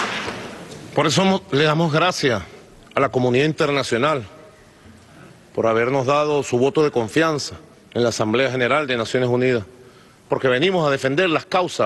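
A man speaks firmly and with emphasis through a microphone.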